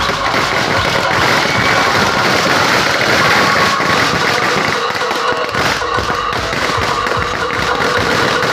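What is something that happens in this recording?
Firecrackers crackle and pop rapidly in a burning effigy.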